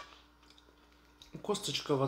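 A fork clinks against a bowl.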